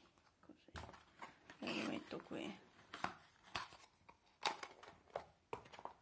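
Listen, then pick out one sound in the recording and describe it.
A paper card packet rustles and crinkles as it is torn open.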